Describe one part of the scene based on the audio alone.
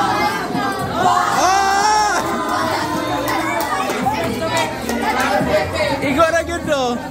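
A teenage girl laughs and squeals loudly.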